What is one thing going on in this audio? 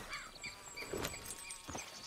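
Horse hooves thud on grass.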